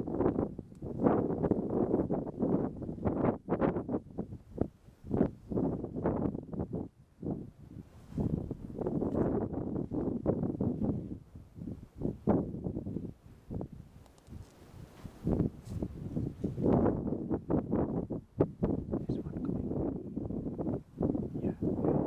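Wind gusts outdoors, buffeting loudly and roughly.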